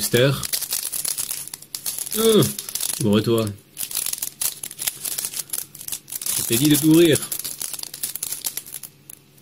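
A foil card pack crinkles and tears as it is opened.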